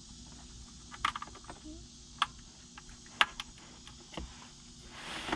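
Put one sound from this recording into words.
Plastic wire connectors click and snap together.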